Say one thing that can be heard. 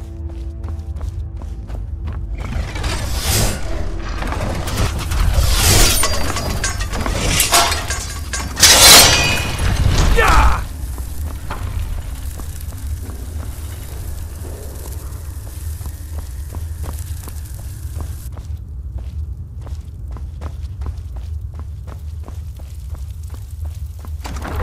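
Footsteps tread steadily on stone in an echoing passage.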